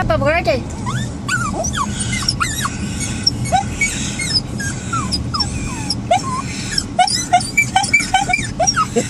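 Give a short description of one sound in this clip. Small dogs whine and yelp in high, sliding cries.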